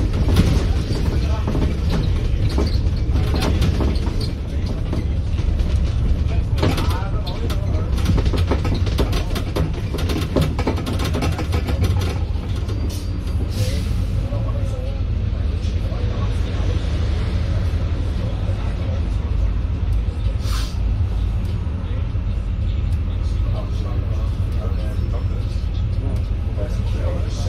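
A bus engine rumbles steadily from inside as the bus drives along.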